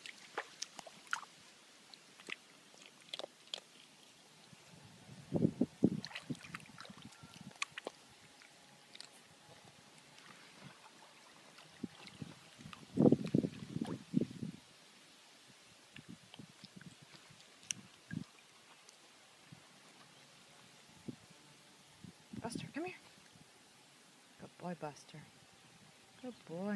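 Small dogs splash and paddle through shallow water.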